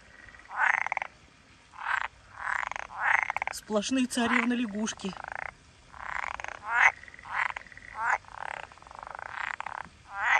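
Frogs croak in repeated rasping bursts, close by.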